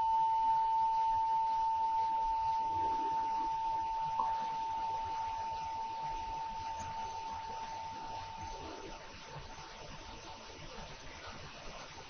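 A hand bell rings out in a long, steady tone that slowly fades away.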